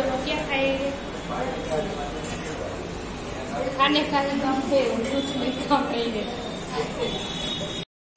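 A woman laughs close by.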